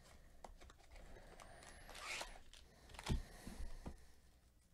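Foil wrappers crinkle as they are set down.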